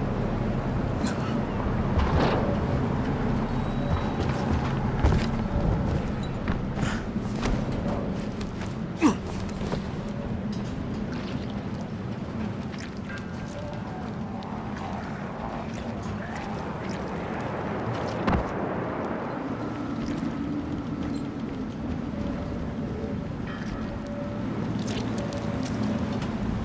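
Footsteps thud and clatter across sheet metal roofs.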